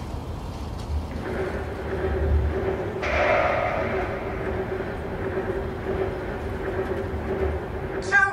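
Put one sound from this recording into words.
Heavy mechanical footsteps thud and clank in a slow march.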